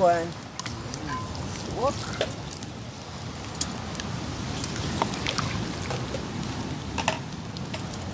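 Water splashes in a pot.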